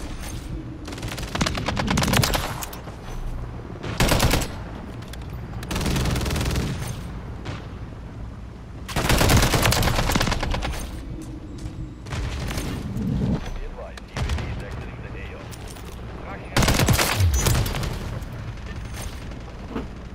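Rapid gunfire bursts out again and again, loud and close.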